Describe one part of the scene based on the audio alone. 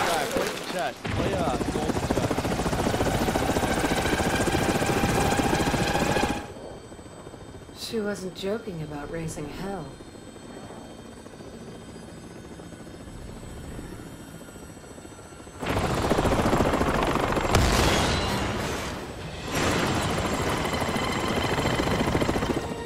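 A helicopter's rotor thuds loudly overhead.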